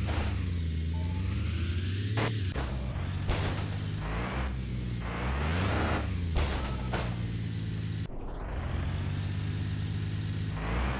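A large truck engine rumbles and idles steadily, rising and falling as it moves slowly.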